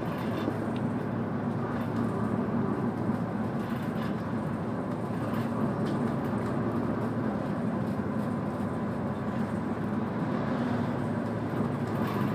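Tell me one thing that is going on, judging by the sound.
A vehicle's engine hums and rumbles steadily while driving.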